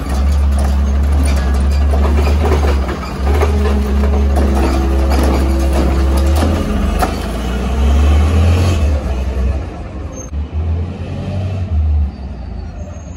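A garbage truck's diesel engine rumbles loudly close by.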